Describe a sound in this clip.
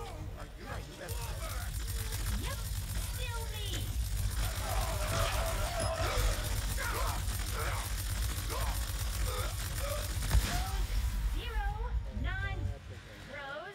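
Energy blasts and explosions boom and crackle.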